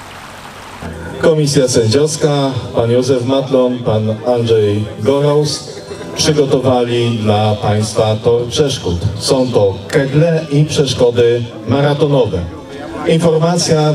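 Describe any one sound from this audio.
A middle-aged man speaks through a microphone outdoors.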